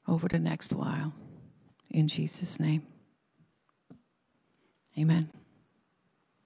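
An older woman reads aloud into a microphone.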